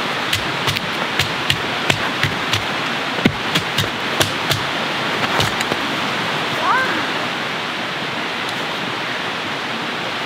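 Snow crunches under footsteps.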